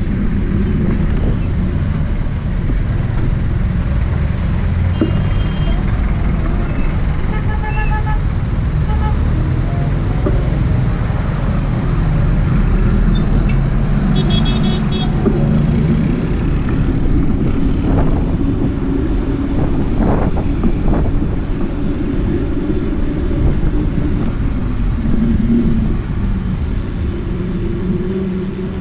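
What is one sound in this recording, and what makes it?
A motorcycle engine hums steadily up close.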